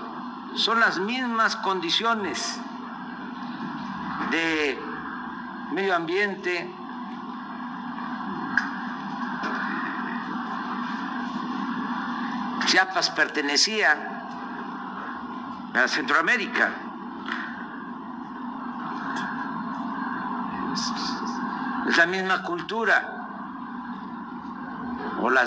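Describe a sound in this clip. An elderly man speaks calmly into a microphone, in bursts with pauses.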